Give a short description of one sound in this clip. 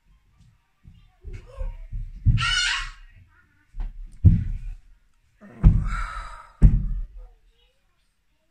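A woman sobs and breathes heavily close to a microphone.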